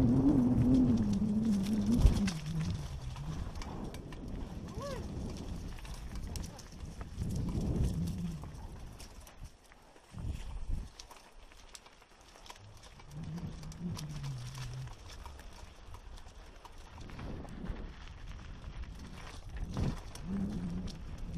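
Tyres crunch over a rocky dirt trail.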